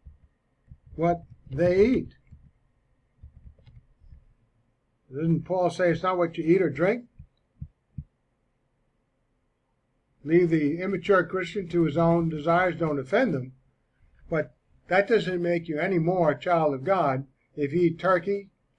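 An older man talks calmly and closely into a microphone, in bursts with pauses.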